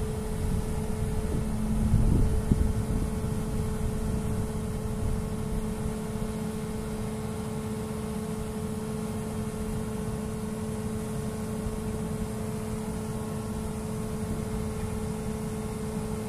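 A diesel wheeled excavator idles.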